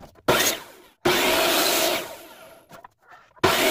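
A compound miter saw cuts through thin wood strips.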